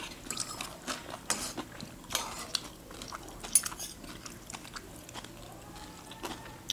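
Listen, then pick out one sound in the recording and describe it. Spoons clink against ceramic bowls.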